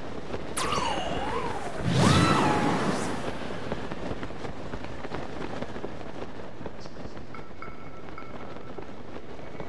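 Wind rushes steadily past during a high glide.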